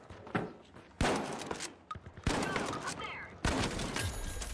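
Gunshots ring out in sharp, loud bursts with a short echo.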